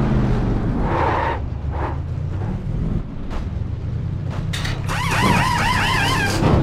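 A race car engine falls to a low idle as the car stops.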